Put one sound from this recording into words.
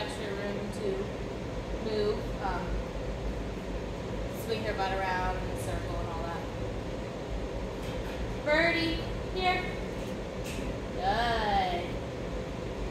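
A young woman speaks calmly and nearby.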